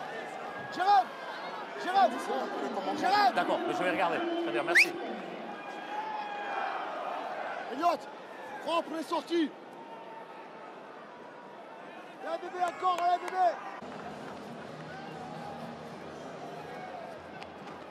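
A crowd cheers in a large outdoor stadium.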